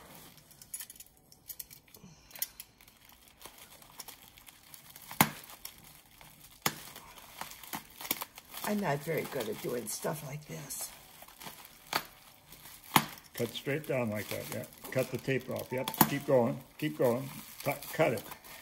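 Plastic wrapping crinkles and rustles in a hand.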